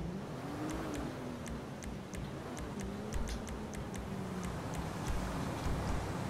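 Soft menu clicks tick quickly.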